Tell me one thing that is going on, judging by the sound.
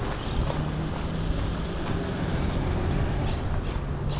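A car drives past on a dirt road.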